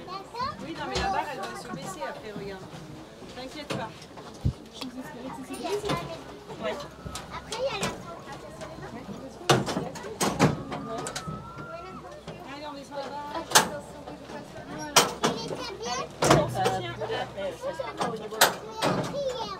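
Knocks and clanks ring out from a ride's metal car.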